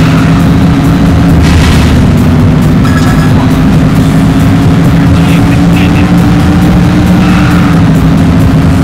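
Tyres screech on the track through corners.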